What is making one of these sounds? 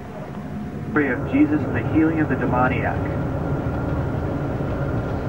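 A bus engine hums and rumbles.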